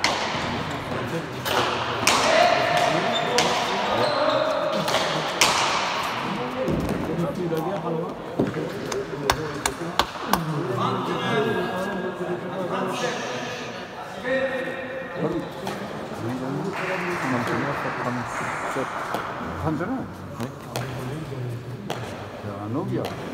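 Footsteps squeak and shuffle on a hard floor.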